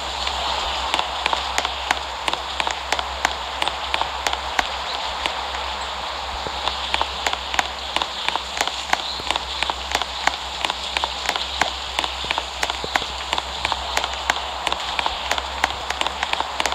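Footsteps patter on a hard surface.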